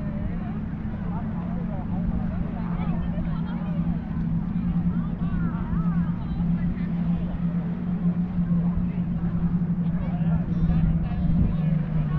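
Children and adults chatter and call out in the distance outdoors.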